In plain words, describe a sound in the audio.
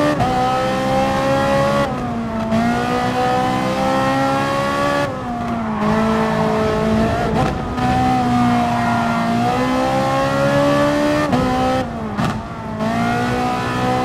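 A racing car engine roars loudly, its pitch climbing and dropping sharply with each gear change.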